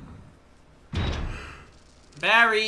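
A heavy metal door thuds shut.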